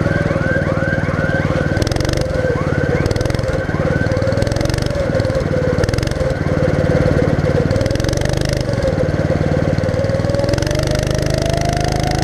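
A go-kart engine drones loudly and steadily close by, rising in pitch toward the end.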